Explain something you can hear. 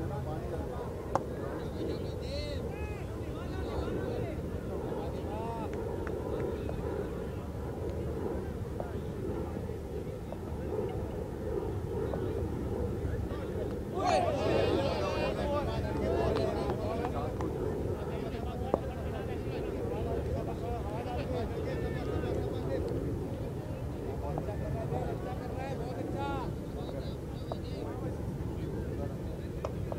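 Men's voices call out from a distance across an open field.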